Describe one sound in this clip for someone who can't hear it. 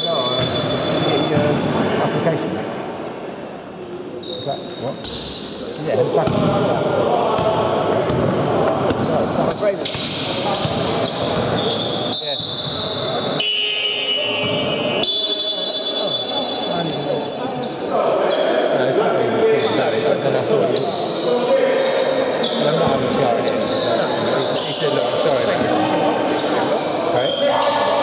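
Young players shout and call out to one another in a large echoing hall.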